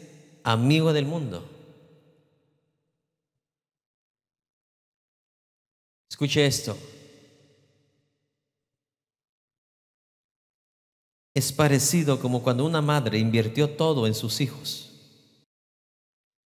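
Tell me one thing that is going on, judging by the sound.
A middle-aged man preaches with passion through a microphone in a large echoing hall.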